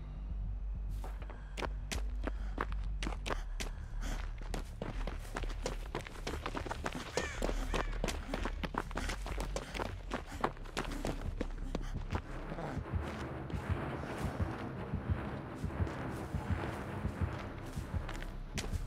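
Quick footsteps run over grass and stone.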